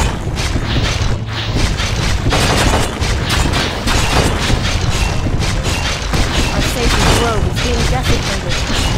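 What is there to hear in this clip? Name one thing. Weapons clash in quick repeated hits.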